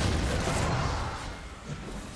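Fantasy combat sound effects whoosh and crackle.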